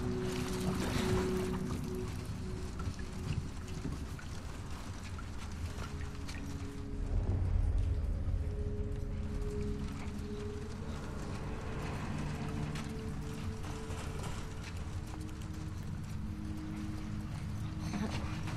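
Footsteps clank on a metal ladder and grating.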